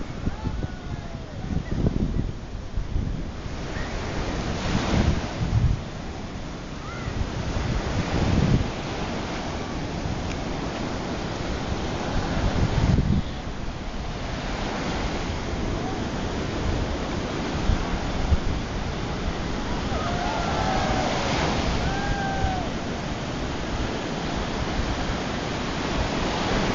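Water splashes around a person wading through the surf.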